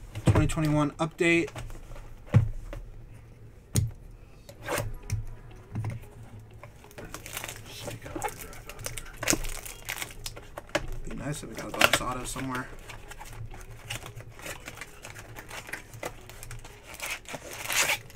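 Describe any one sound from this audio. Plastic wrap crinkles and rustles as a box is unwrapped by hand.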